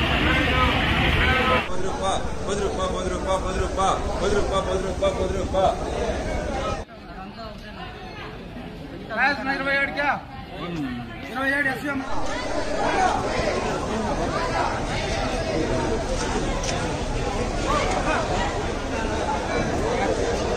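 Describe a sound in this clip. Several men talk nearby in a busy crowd.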